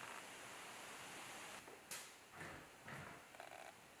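A cabinet door knocks open.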